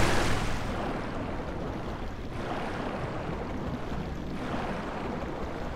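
Muffled underwater swimming strokes swish in bursts.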